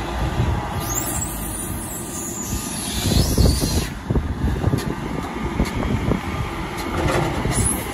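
Silage pours from a loader's bucket into a mixer wagon.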